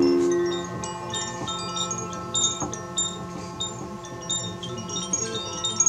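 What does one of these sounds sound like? Small metal chimes tinkle lightly.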